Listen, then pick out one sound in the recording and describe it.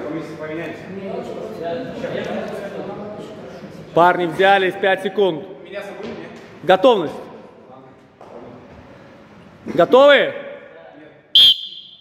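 Teenage boys talk and call out in an echoing hall.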